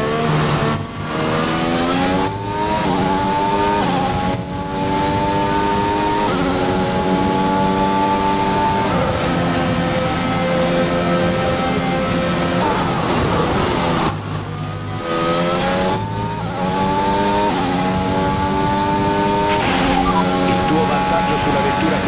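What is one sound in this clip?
A racing car engine screams at high revs, rising with each gear change and dropping sharply under braking.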